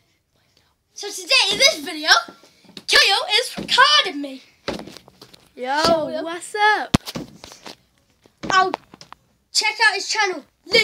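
A boy talks excitedly and close by, with pauses.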